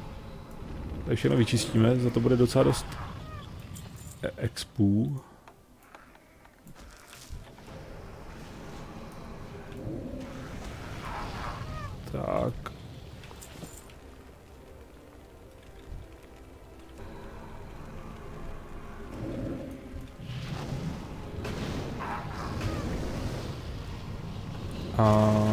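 A fiery spell whooshes and bursts.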